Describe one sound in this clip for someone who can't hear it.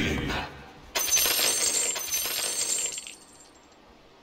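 A magic spell bursts with a bright, shimmering whoosh.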